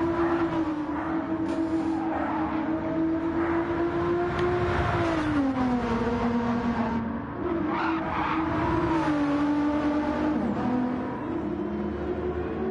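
A racing car engine roars steadily, its pitch dropping and rising as the driver shifts gears.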